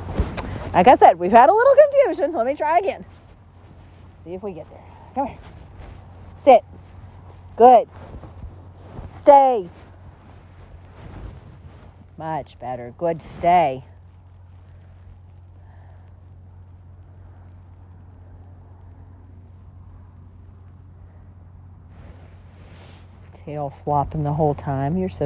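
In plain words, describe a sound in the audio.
A woman gives commands to a dog with animation, some distance away outdoors.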